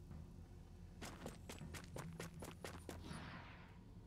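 Gunshots crack in a quick rapid burst.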